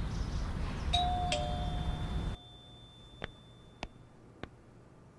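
A doorbell rings with a two-tone chime.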